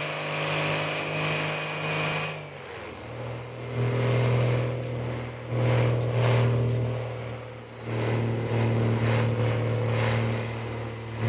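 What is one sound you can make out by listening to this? A heavy truck engine drones steadily, dipping and rising again as it shifts gears.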